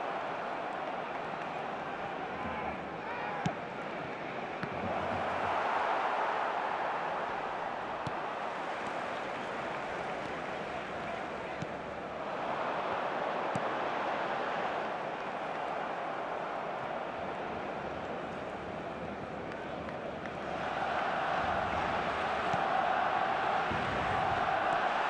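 A stadium crowd roars steadily, swelling louder now and then.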